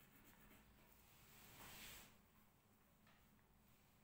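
Paper rustles as hands slide it across a table.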